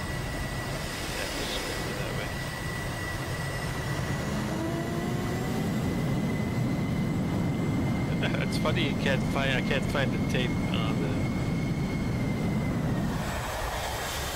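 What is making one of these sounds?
A jet engine roars steadily with a high whine.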